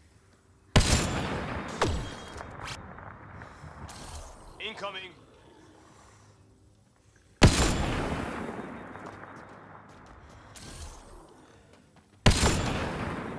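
A sniper rifle fires loud booming shots that echo away.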